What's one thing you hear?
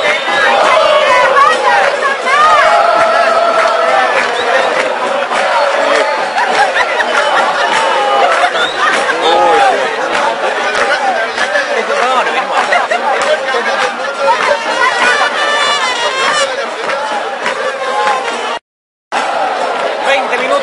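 A large crowd of spectators shouts and chants loudly outdoors.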